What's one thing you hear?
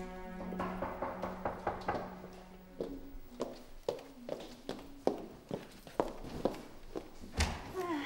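Footsteps tap across a wooden floor.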